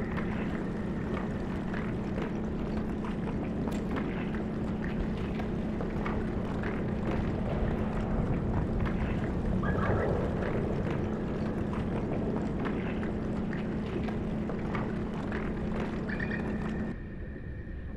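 A mechanical drill grinds steadily against rock underwater.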